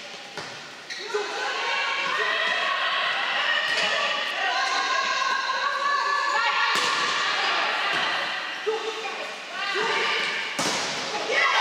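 A volleyball is struck hard with sharp slaps during a rally.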